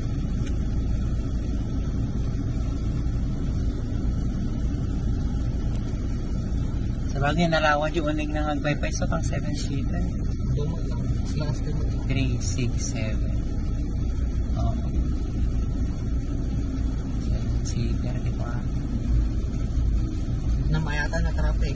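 A car engine idles with a low steady rumble in traffic.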